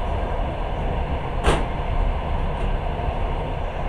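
A passing work train clatters by close at hand.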